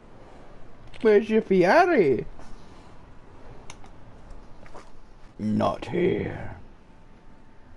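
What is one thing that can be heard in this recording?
A middle-aged man speaks briefly in short, drawn-out phrases.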